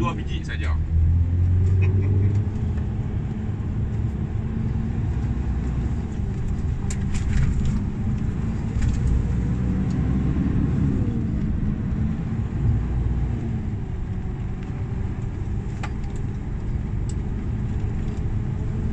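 A large vehicle's engine rumbles steadily from inside the cab.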